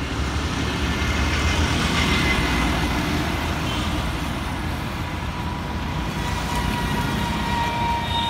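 A diesel bus drives by.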